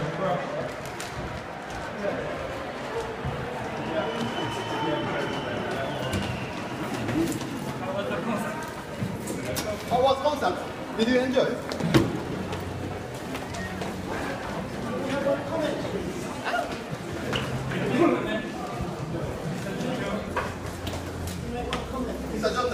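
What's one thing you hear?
A crowd of men and women chatters and murmurs indoors.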